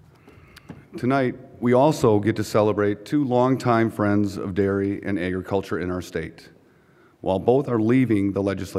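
A middle-aged man speaks calmly into a microphone, heard through loudspeakers.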